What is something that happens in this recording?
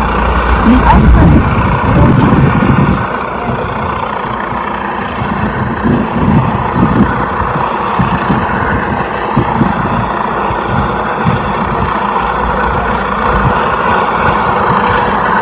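A helicopter's rotor thumps overhead at a distance.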